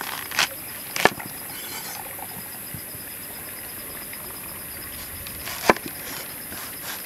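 A knife thuds on a wooden board.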